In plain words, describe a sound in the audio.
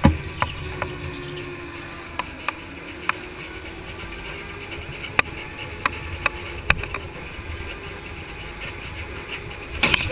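Other go-kart engines buzz nearby.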